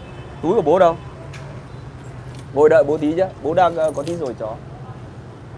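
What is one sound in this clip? A young man speaks with animation close to a clip-on microphone.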